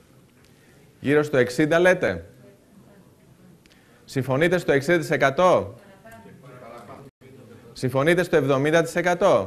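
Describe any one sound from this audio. A man speaks through a microphone, with pauses between phrases.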